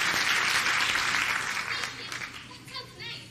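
An audience applauds in a large hall and the applause fades.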